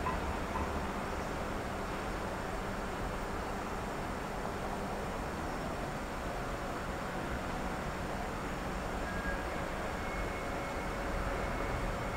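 A distant train rumbles softly as it approaches along the tracks.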